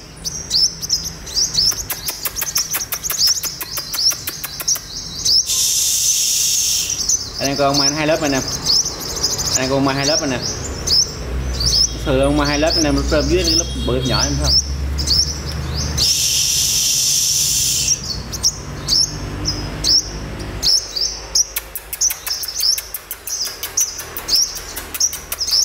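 A small bird chirps rapidly with sharp, high notes, close by.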